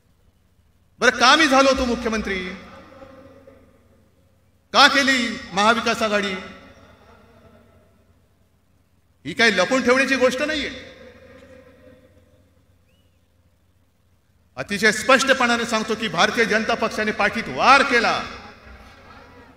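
A man speaks forcefully into a microphone over loudspeakers, in bursts with long echoing pauses.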